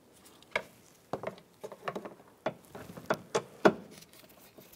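A screwdriver pries and clicks against hard plastic.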